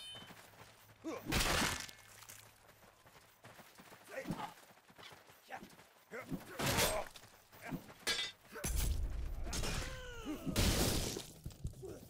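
Swords clash and strike armour.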